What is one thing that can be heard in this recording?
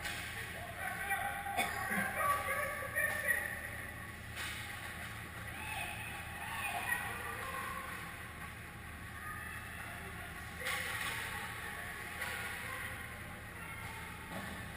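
Skates scrape and hiss on ice in a large echoing rink.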